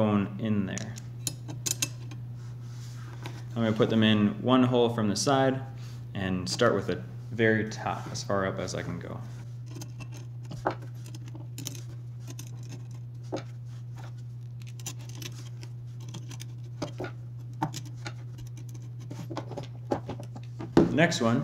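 Small metal parts click and tap.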